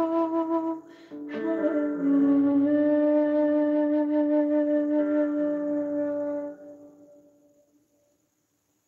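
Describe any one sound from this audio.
A wooden flute plays a slow, breathy melody close to a microphone and fades out.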